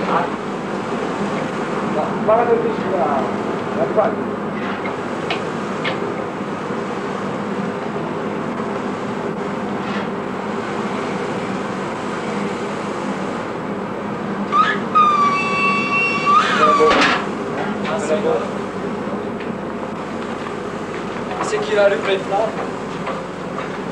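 A furnace roars steadily.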